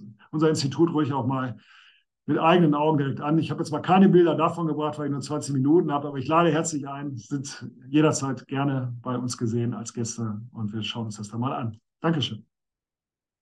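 A man speaks calmly through a microphone, as on an online call.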